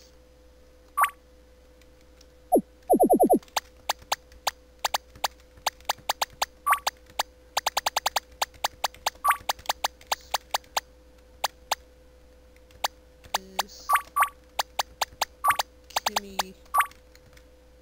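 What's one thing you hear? A higher electronic chime sounds now and then.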